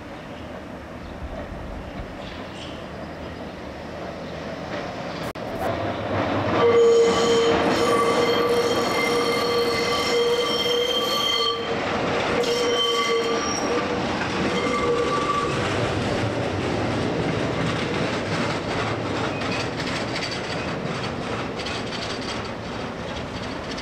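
A tram rumbles along the rails, drawing near and passing close by.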